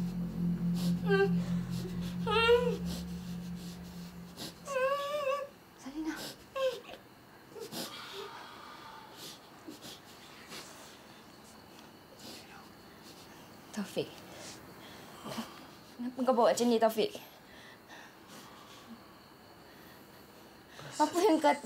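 A young woman speaks tensely and urgently, close by.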